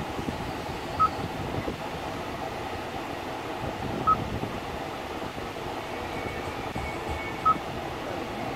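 A touchscreen beeps briefly with each tap.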